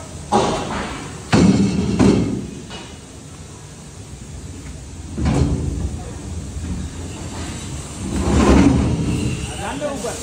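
A heavy metal panel clanks and thuds as men lift it.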